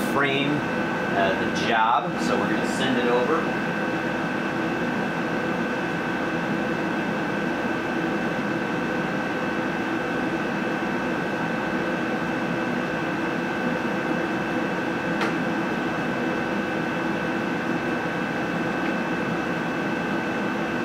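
A machine hums steadily with a high whine.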